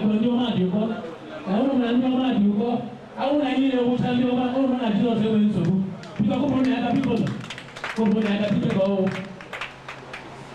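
Women sing together loudly nearby.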